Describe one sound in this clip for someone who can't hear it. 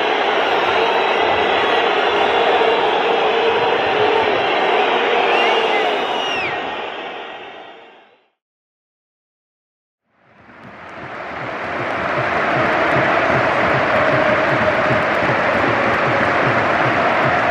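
A large stadium crowd cheers and chants loudly, echoing around the stands.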